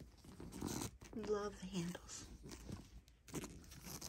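A hand rustles and taps the handles of a fabric bag.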